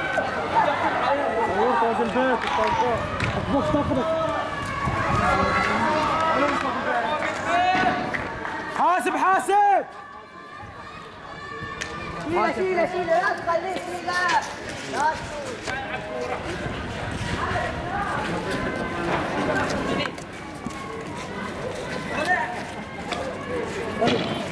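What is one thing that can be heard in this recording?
Young men shout excitedly outdoors, with voices echoing along the street.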